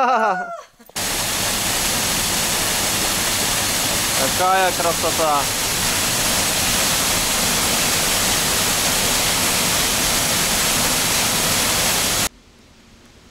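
A small waterfall splashes and rushes steadily into a pool.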